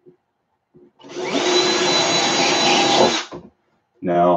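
A cordless drill whirs.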